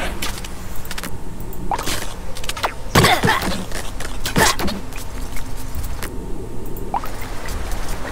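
Weapons clash in a small battle.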